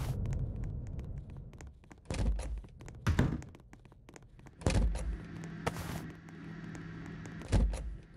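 Light footsteps patter across a floor.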